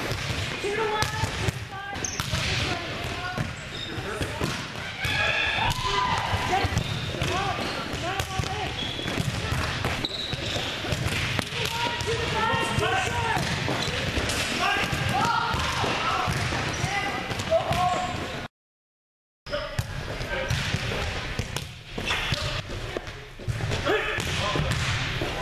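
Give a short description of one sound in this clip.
Young women talk and call out in a large echoing gym.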